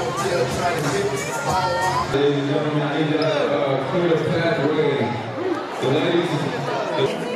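A crowd of young people chatters and cheers loudly.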